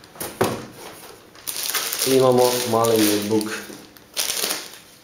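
Plastic wrapping rustles and crinkles as it is handled.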